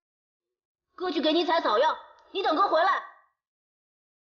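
A young boy speaks tearfully, close by.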